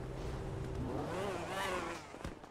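A car engine revs up as the car pulls away.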